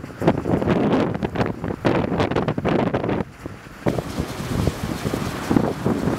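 Strong wind gusts and buffets loudly outdoors.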